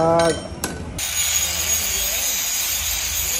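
An angle grinder whines as it grinds metal.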